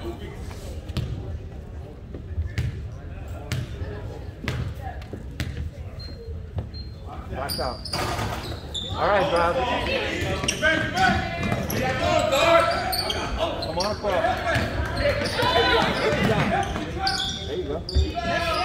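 A basketball bounces on a hard court with echoing thumps.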